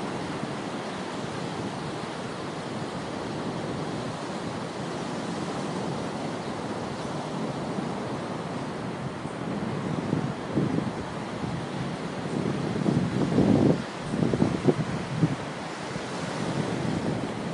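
Waves break and wash over a rocky shore.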